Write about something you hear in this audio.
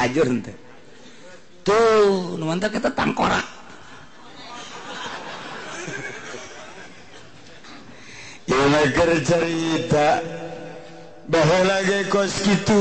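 An elderly man speaks with animation, drawn out and sing-song, through a microphone and loudspeaker.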